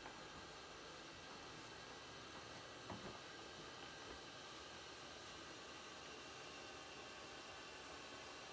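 A small machine hums steadily close by.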